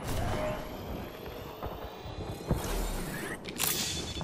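A shield charges with a rising electric hum.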